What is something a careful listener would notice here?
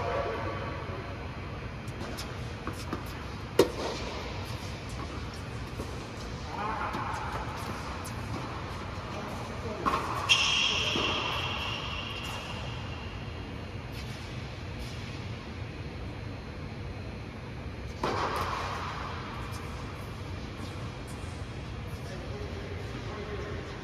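Tennis balls are struck with rackets, with sharp pops that echo in a large hall.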